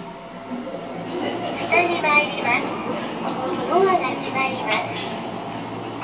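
Elevator doors slide open with a soft rumble.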